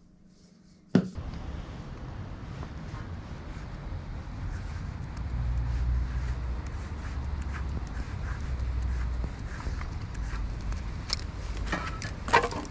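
A paint marker scrapes and taps on a metal pipe.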